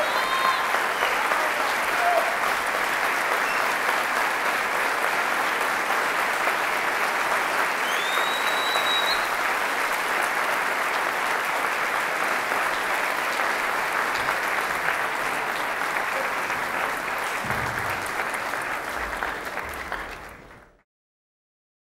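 A large audience applauds steadily in a big hall, then the applause fades away.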